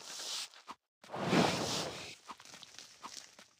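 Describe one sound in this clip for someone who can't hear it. A soft whoosh sounds as a cloud of smoke puffs up.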